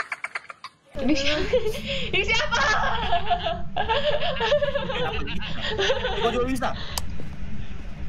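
A young woman laughs through a microphone.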